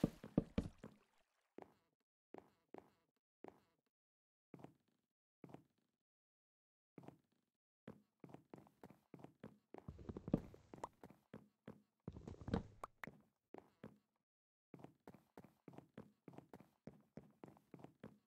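Footsteps tap steadily on wooden planks.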